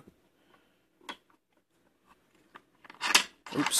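Metal parts of a lock click and clack as they are turned by hand.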